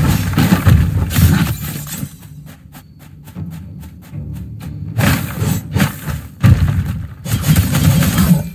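Sword slashes and heavy impacts land in quick bursts.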